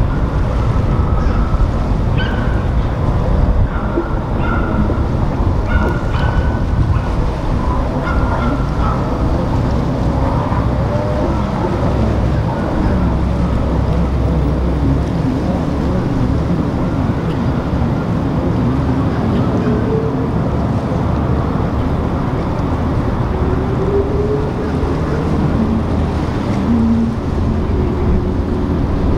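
A motor yacht's engines rumble as it cruises past.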